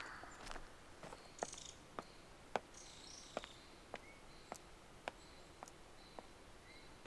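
Footsteps thud on wooden porch boards.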